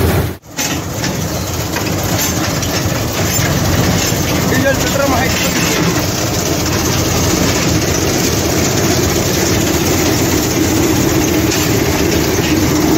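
A combine harvester drones nearby as it cuts the crop.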